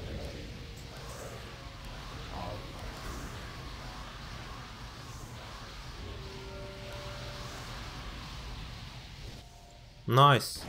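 Magic spell effects crackle and whoosh steadily.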